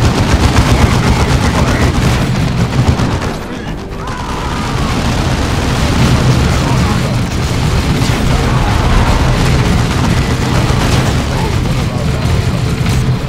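Gunfire and explosions rattle in a fierce battle.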